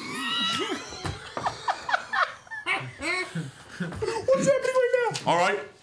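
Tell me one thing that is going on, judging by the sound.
A group of men and women laugh loudly over microphones.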